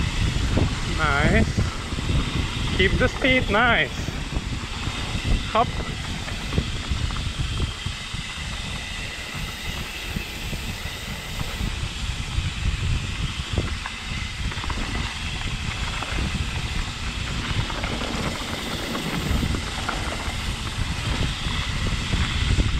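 A bicycle rattles and clunks over bumps.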